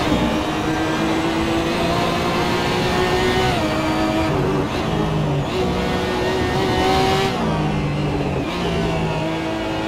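A racing car engine roars at high revs, dropping in pitch with each quick gear change.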